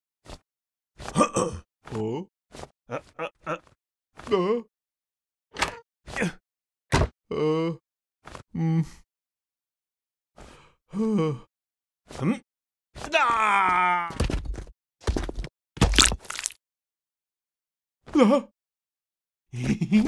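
A man speaks with animation in a cartoonish voice.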